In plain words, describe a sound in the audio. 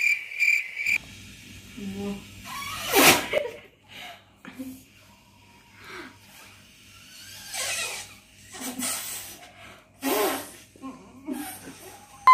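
A girl blows air into an inflatable plastic mat.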